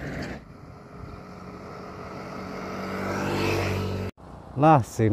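A motorbike engine approaches and grows louder.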